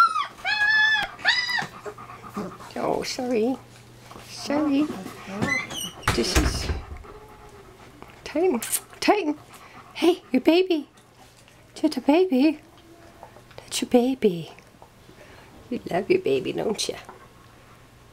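A puppy whines and whimpers close by.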